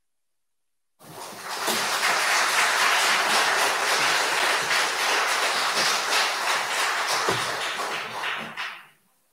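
An audience applauds loudly in a large echoing hall.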